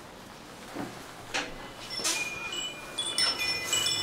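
A door opens with a click.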